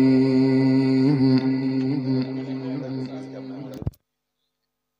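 An elderly man chants in a long, held melodic voice through a microphone and loudspeakers.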